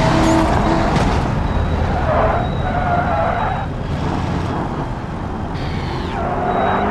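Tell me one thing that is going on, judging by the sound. A car engine drops to a low rumble as the car slows.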